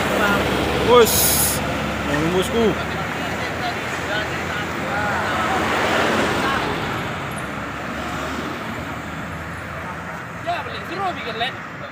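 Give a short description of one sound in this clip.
Cars drive past on the road.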